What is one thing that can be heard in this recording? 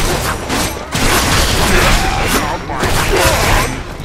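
A sword swings and strikes with sharp magical bursts.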